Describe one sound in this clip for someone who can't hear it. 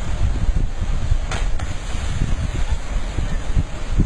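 A person jumps into deep water with a splash.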